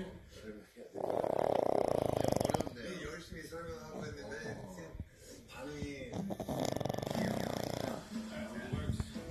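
A pug snores loudly.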